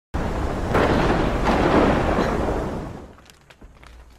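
A storm wind roars loudly, then fades away.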